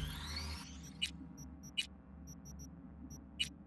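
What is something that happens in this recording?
Short menu clicks and beeps sound one after another.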